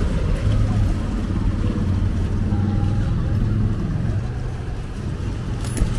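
Vehicles drive slowly over a wet road.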